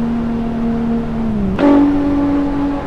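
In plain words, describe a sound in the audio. A car engine drops in pitch, then jumps up as a gear changes.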